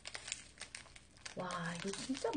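A wrapper crinkles and tears close by.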